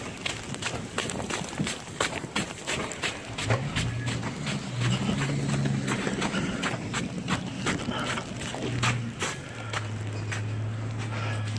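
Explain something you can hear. Footsteps crunch on packed snow and ice.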